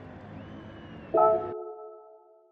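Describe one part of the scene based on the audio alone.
Soft background music plays, then cuts off.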